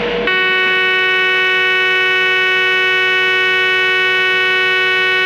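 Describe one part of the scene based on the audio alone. An electric locomotive hums as it runs along the track.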